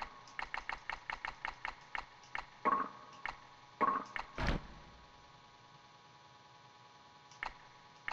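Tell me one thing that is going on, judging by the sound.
Short electronic menu blips tick in quick succession.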